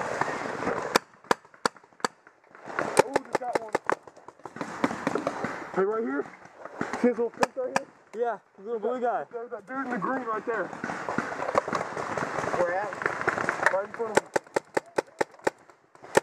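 A paintball gun fires rapid sharp pops up close.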